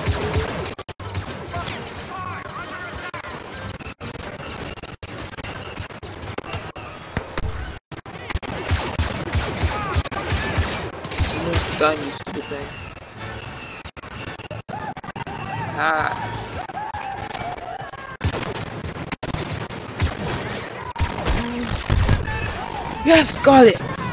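Blaster shots crack and pop in bursts.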